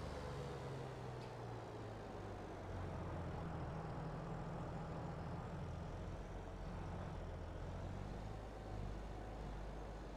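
A tractor engine drones steadily at a low pitch.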